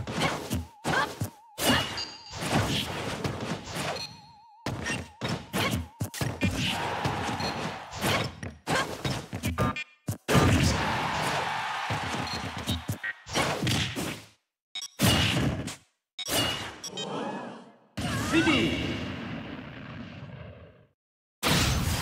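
Video game hits and blasts land in quick bursts.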